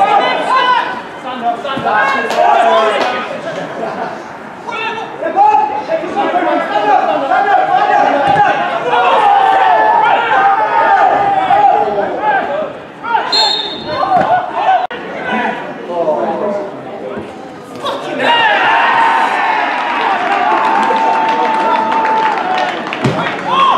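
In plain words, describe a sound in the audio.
Men shout and call to one another across an open outdoor pitch.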